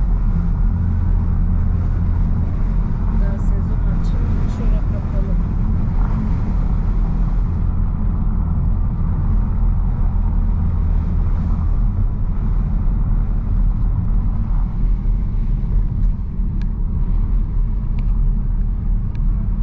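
A car drives along a road, heard from inside the cabin.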